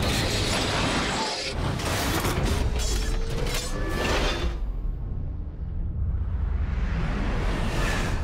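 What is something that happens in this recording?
A large robot's metal limbs whir and clank.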